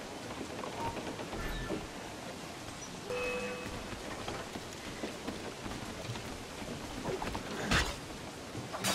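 Rain patters steadily on a wooden deck.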